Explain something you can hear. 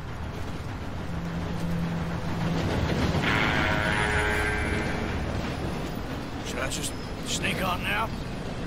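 A steam train rumbles and hisses as it arrives.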